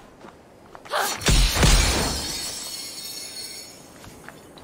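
A magical burst whooshes and crackles loudly.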